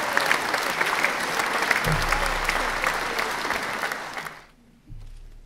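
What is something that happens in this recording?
An audience applauds in an echoing hall.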